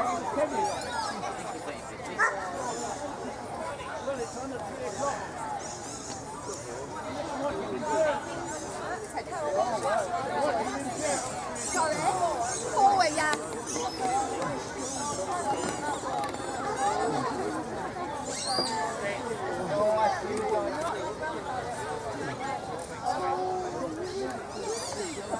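A crowd of men and women chat casually outdoors.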